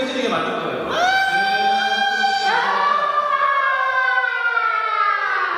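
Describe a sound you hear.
A young man shouts excitedly into a headset microphone.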